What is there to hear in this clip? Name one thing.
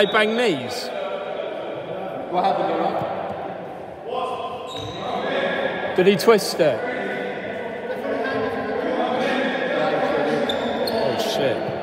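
Men shout and call out across a large echoing hall.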